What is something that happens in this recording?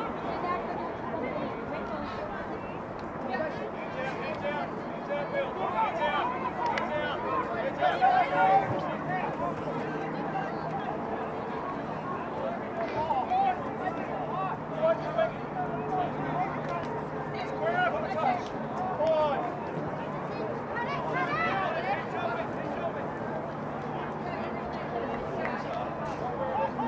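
Several young women shout and call out to one another outdoors.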